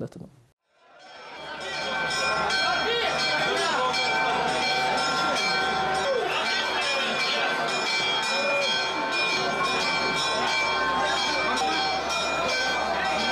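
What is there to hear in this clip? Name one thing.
A dense crowd chants and clamours in a large echoing hall.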